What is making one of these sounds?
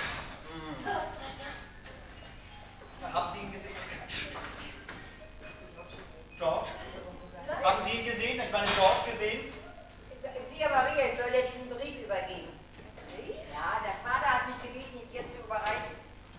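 A woman speaks with animation, heard from a distance in an echoing hall.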